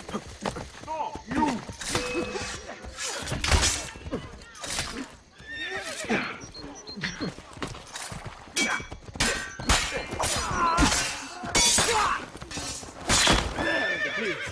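Men shout and grunt while fighting.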